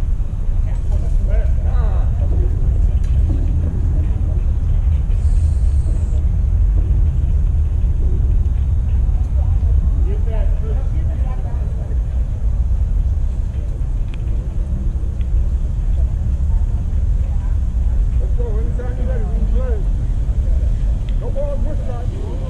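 Young men call out to each other from a distance.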